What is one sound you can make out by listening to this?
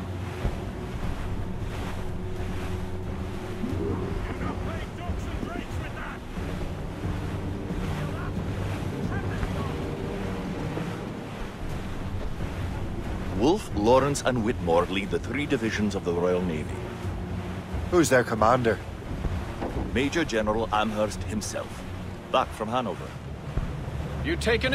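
Waves wash against a sailing ship's hull.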